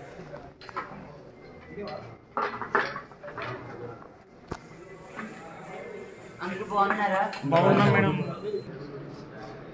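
A woman speaks close by.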